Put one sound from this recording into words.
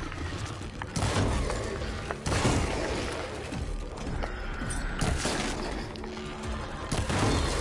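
Loud blasts and impacts ring out in quick succession.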